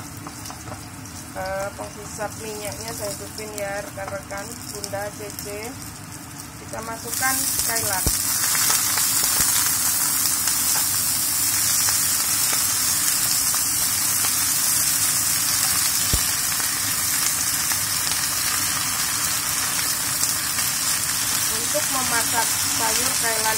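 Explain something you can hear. A wooden spatula scrapes and stirs in a frying pan.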